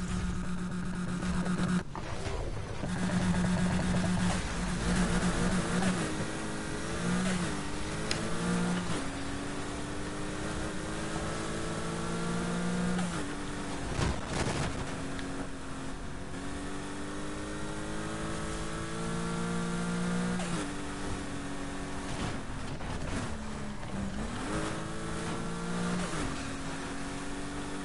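A racing car engine revs hard, its pitch rising through each gear and dropping at every shift.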